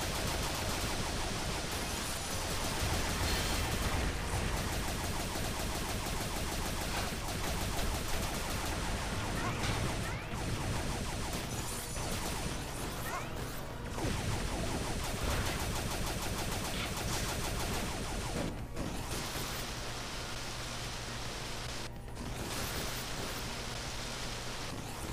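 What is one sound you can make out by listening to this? Electric blasts crackle and roar from a game robot.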